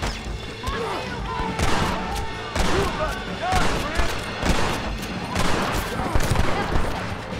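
Gunshots ring out again and again.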